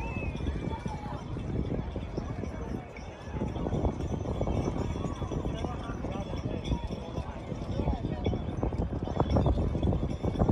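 Young men talk and call out nearby.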